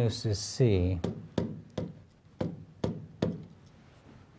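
A marker taps and squeaks against a board.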